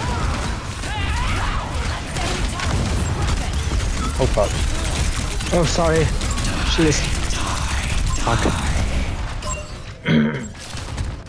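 A heavy gun fires rapid, loud bursts.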